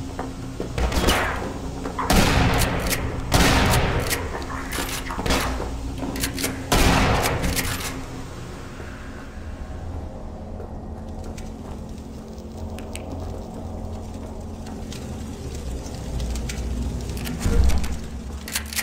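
A shotgun fires loud, booming blasts that echo.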